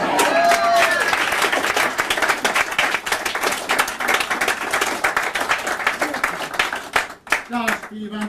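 An audience claps and cheers loudly in a large room.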